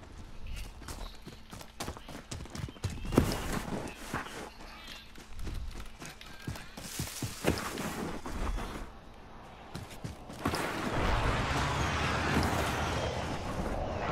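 Footsteps run quickly over grass and dirt.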